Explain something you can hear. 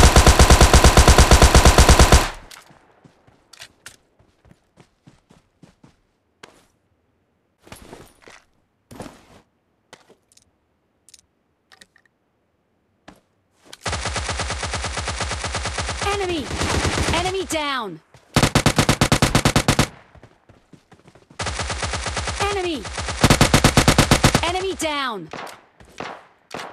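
Rapid automatic gunfire rattles in long bursts.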